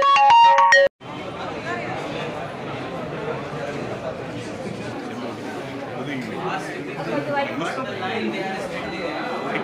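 A crowd murmurs and chatters indoors.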